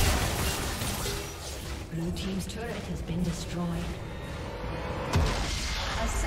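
Game battle effects clash and burst in quick succession.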